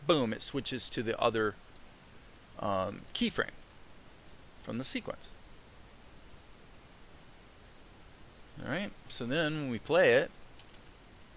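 A man talks calmly into a close microphone, in short phrases with pauses.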